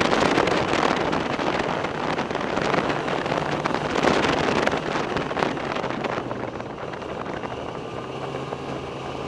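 Wind rushes past loudly, easing off toward the end.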